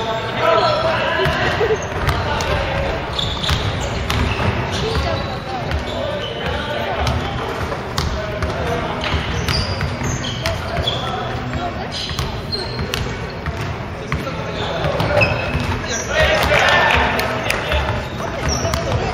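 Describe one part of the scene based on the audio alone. Young men shout and call out across a large echoing gym.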